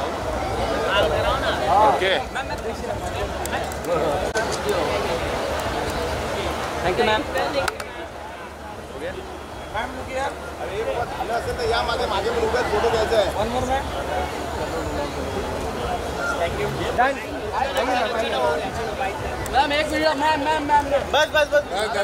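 A crowd of men and women chatters loudly all around.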